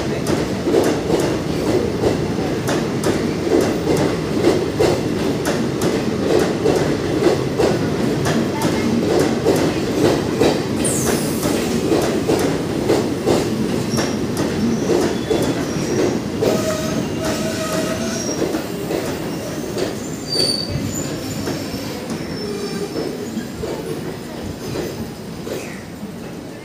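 A passenger train rumbles past close by, its wheels clattering rhythmically over rail joints.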